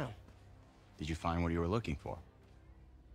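A man asks a question calmly.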